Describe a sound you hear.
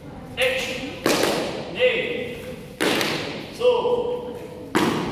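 Bare feet stamp on a padded mat.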